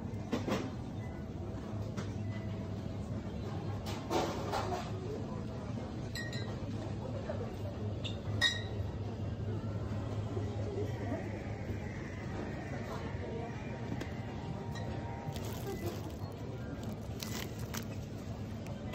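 Shoppers murmur.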